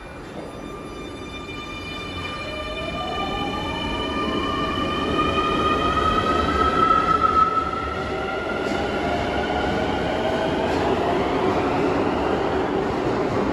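An electric subway train pulls away with a rising motor whine.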